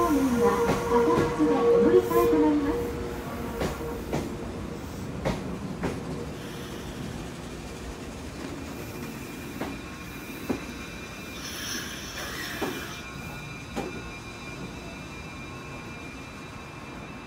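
A standing train hums steadily beside a platform.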